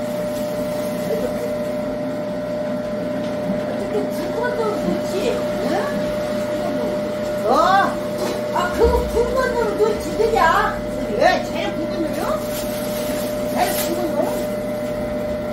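An elderly woman talks with animation close by.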